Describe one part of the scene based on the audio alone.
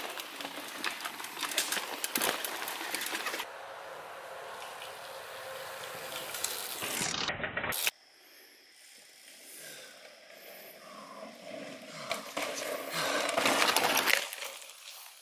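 Bicycle tyres crunch and rattle over a dirt trail close by.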